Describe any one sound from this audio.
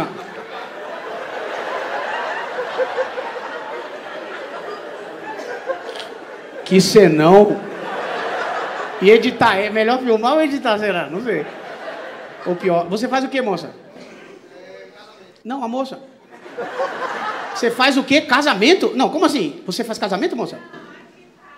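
An audience laughs in a large hall.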